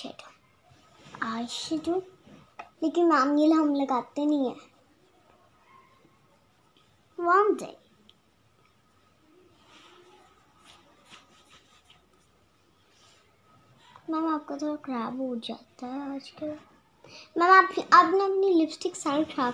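A young girl talks close by, in short bursts.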